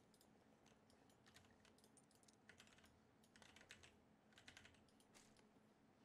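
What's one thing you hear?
Gear rustles and clicks as items are picked up.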